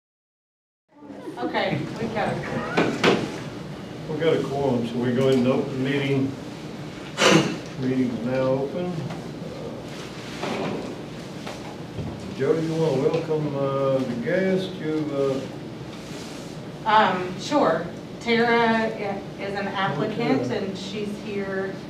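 An elderly man speaks calmly in a quiet room, heard from across the table.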